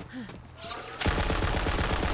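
A gun fires in a rapid, loud burst.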